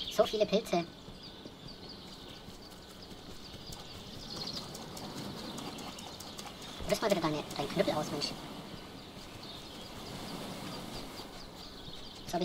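Footsteps pad quickly over grass and sand.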